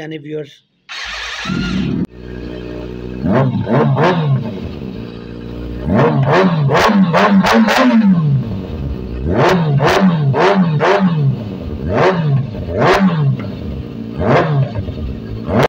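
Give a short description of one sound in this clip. A motorcycle engine starts up and idles with a deep rumble.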